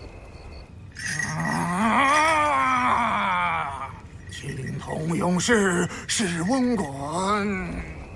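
A man chants loudly in a wavering voice.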